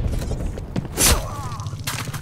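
A heavy blow strikes a body with a dull thud.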